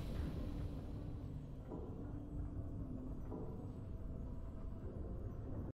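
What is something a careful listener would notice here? Triumphant game music plays.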